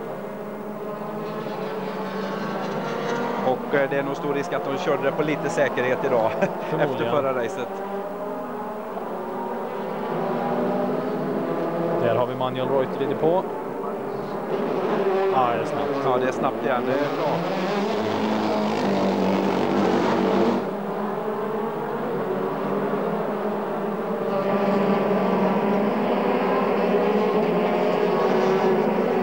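Racing car engines roar and whine as cars speed past.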